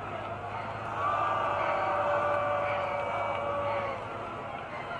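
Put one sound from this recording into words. A marching band holds a loud, sustained brass chord outdoors.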